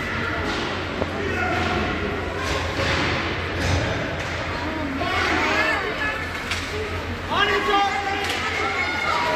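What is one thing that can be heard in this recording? A hockey stick smacks a puck with a sharp crack.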